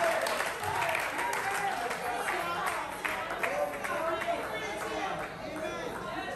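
A congregation of women and men sings and calls out together.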